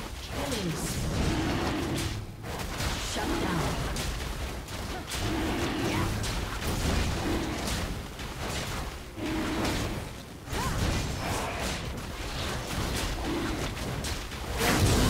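Magic attacks hit with sharp bursts.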